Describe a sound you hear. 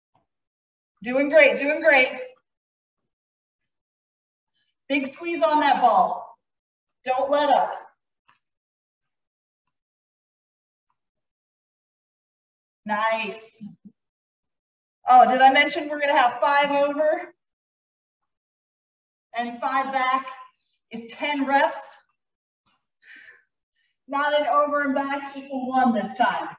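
A woman speaks in short bursts to instruct, heard through a close microphone.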